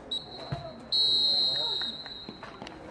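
A referee blows a whistle sharply outdoors.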